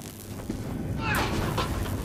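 Footsteps clang on a metal ladder.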